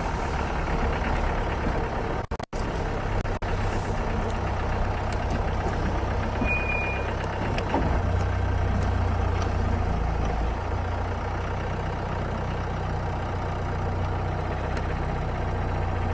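A vehicle engine rumbles steadily while driving over a rough dirt track.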